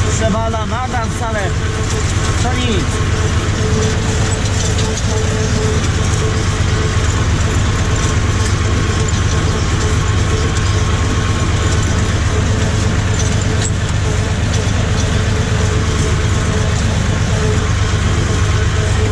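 A tractor engine drones steadily and loudly from close by.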